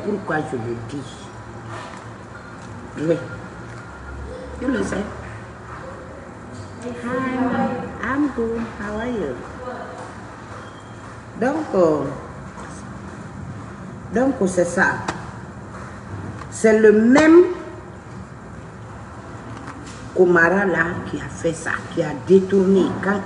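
A middle-aged woman speaks close to a microphone in bursts, with pauses.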